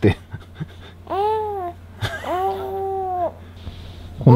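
A baby coos and babbles.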